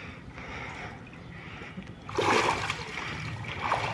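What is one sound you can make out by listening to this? Water sloshes as a man climbs out of a pool.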